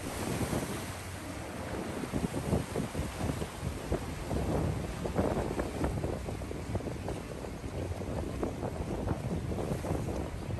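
Waves break and wash over rocks close by.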